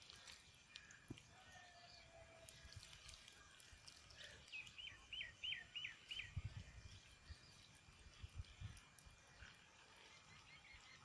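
Hands handle wet chopped food with soft squelches and taps.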